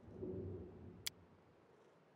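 A single short click sounds.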